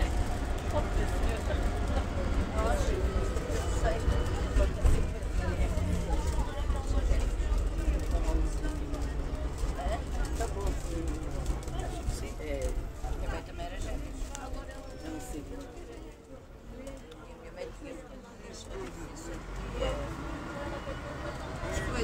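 Passengers chatter in the background.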